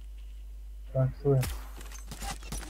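A rifle fires loud gunshots.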